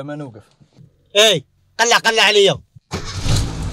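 A second man answers calmly.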